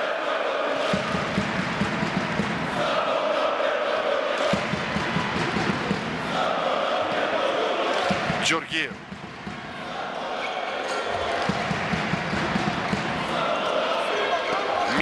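A ball bounces on a hard court floor.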